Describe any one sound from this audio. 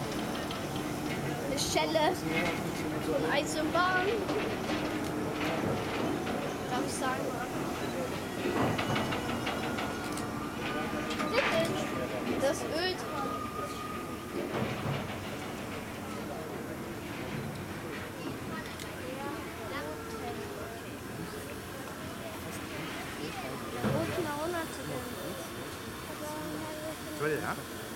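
A crowd of people chatters in the open air.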